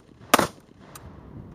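A rifle fires a loud shot outdoors.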